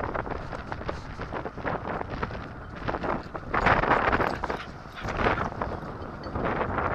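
Dogs' paws crunch quickly through snow nearby.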